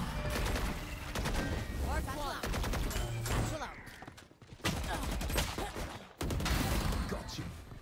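Rapid gunshots fire in sharp bursts.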